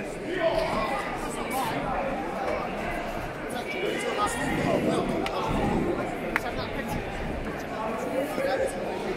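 Men near by talk loudly.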